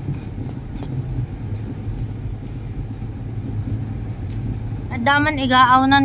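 A car engine hums low and steady from inside the car.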